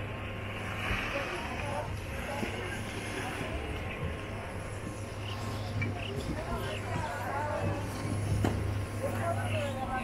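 Skis scrape across snow.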